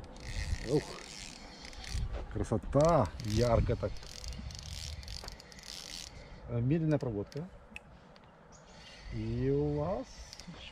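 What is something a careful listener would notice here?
A fishing reel clicks and whirs as a man winds it.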